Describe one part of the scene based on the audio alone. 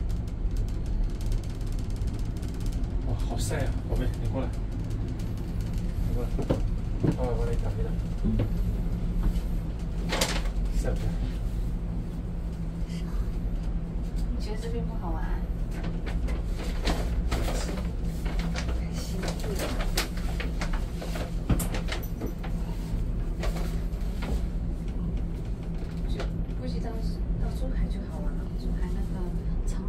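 A steady low hum and rumble of a cable car cabin fills the air.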